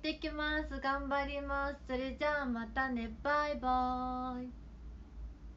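A young woman speaks cheerfully and animatedly close to a microphone, ending on a long drawn-out word.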